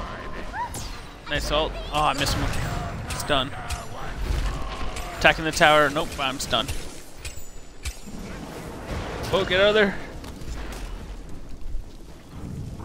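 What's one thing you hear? Weapons clash with sharp impacts.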